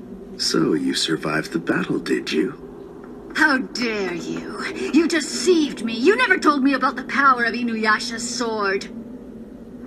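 A young woman sings with lively expression, close by.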